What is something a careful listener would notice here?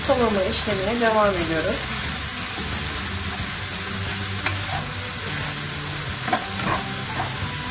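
A wooden spoon stirs and scrapes in a pan.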